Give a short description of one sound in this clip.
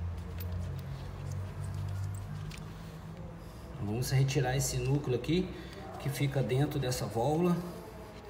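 A metal fitting clicks and scrapes as it is handled.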